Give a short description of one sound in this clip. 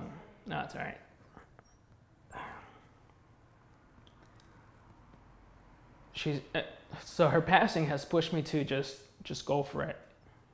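A young man speaks calmly and close by, with pauses.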